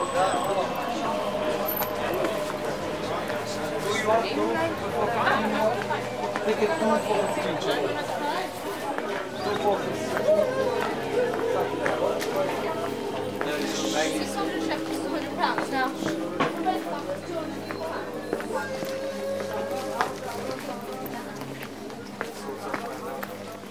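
Footsteps scuff on a stone pavement.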